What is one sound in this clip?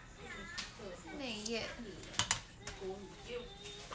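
Plastic packaging crinkles and rustles in hands.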